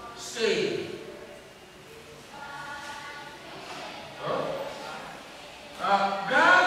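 An elderly man speaks calmly into a microphone, heard over a loudspeaker in an echoing hall.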